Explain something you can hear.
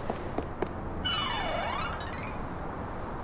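A bright shimmering chime rings out and glides down.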